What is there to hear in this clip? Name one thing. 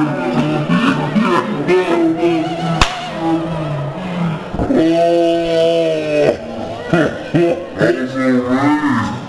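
Young men cheer and shout loudly, close by.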